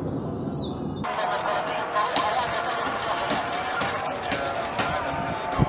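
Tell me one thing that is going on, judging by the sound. Rockets and interceptions boom in the distance.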